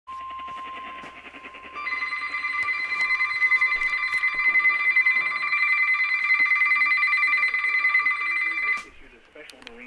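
A weather radio sounds a steady, piercing alert tone.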